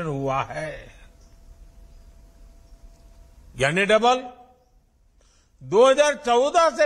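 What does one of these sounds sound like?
An elderly man speaks calmly and firmly through a microphone.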